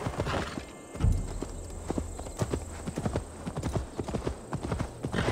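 A horse's hooves thud on soft ground at a steady trot.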